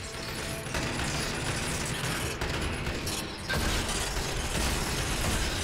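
A shotgun fires loudly in a large echoing space.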